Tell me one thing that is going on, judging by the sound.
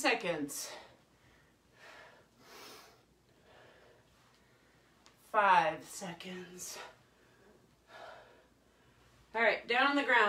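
A woman speaks close by in short, breathless bursts.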